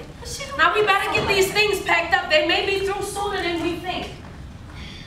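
A woman speaks with strong emotion, raising her voice.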